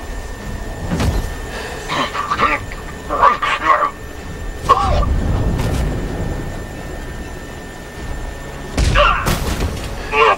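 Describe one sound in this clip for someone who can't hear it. Heavy punches thud against a body.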